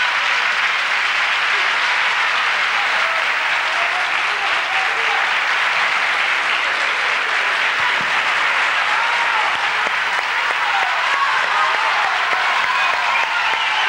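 An audience cheers with shouts and whistles.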